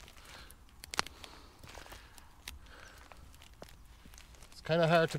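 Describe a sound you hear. Dry leaves and twigs rustle and crackle as hands rummage through them.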